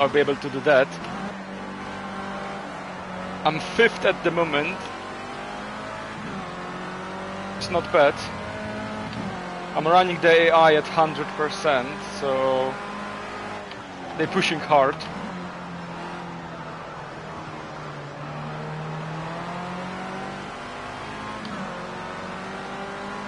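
A racing car engine drones steadily, rising and falling in pitch as it revs and shifts.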